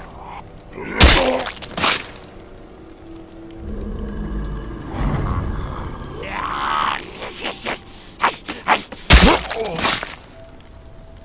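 A heavy blow thuds loudly.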